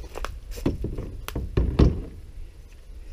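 Hard plastic parts knock and clatter as they are handled close by.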